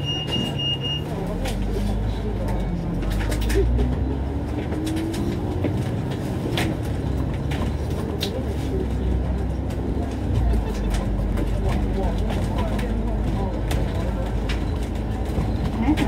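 A bus engine revs up and rises in pitch as the bus pulls away and drives along.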